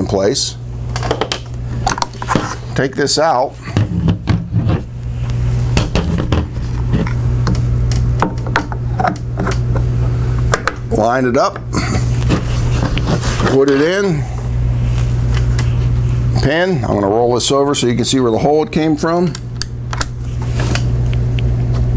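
Metal parts of a rifle click and clack as a man handles them.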